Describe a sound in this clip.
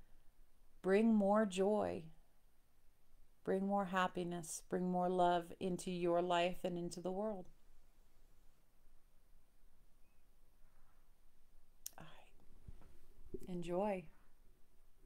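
A middle-aged woman speaks calmly and closely into a microphone, in short phrases with pauses.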